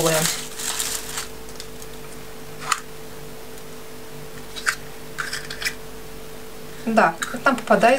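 A plastic capsule clicks as it is opened and snapped shut.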